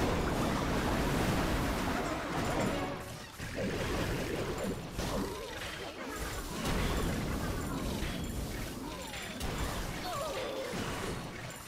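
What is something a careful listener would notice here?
Explosions and clashing battle effects boom and clatter continuously.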